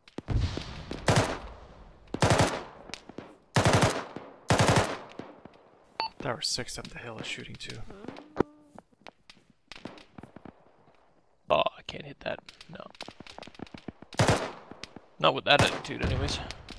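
A rifle fires loud single shots that echo away.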